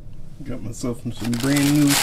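Tissue paper rustles.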